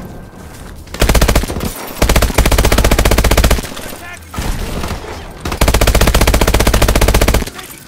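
A rifle fires rapid automatic bursts.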